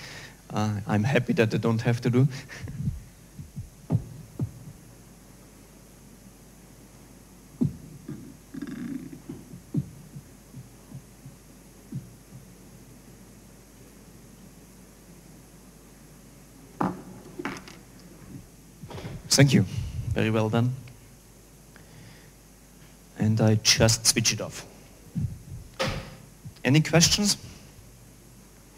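A man speaks into a microphone, pausing between phrases.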